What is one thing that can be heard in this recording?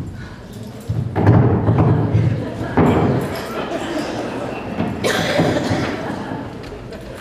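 A man cries out and groans loudly in a large echoing hall.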